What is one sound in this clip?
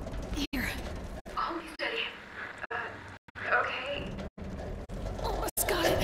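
A young woman speaks with effort, close by.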